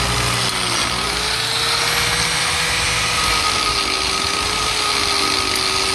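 An angle grinder whines loudly and grinds against brick.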